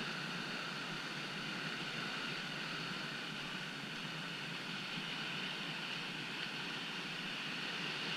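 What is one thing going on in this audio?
Whitewater rushes and churns loudly close by.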